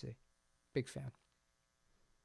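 A man speaks briefly and closely into a microphone.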